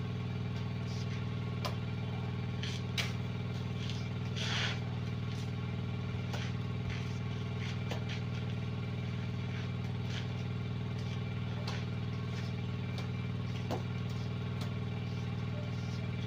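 A trowel scrapes and slaps wet plaster onto a wall.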